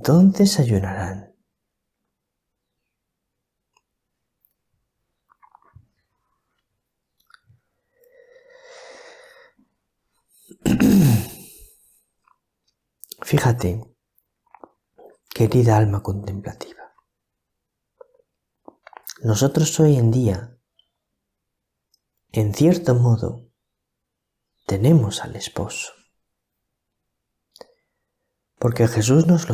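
A middle-aged man speaks calmly and closely into a microphone, with pauses between phrases.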